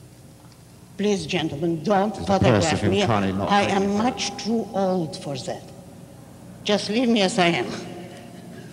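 An elderly woman speaks into a microphone with animation.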